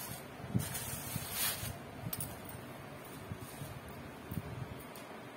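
Silk fabric rustles softly as hands smooth and fold it.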